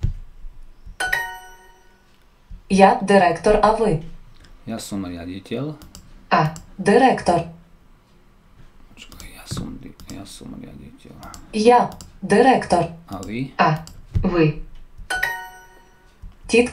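A bright chime rings out twice.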